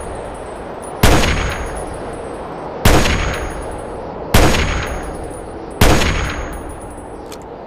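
Loud rifle shots fire one after another and echo away.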